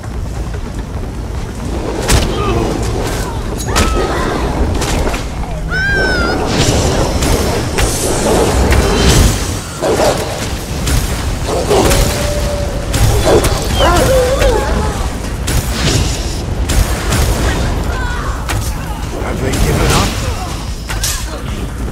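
Magic spells crackle and blast in a fantasy battle.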